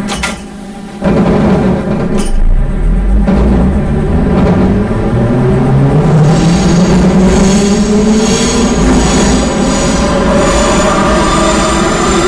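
Train wheels rumble and clatter over rails.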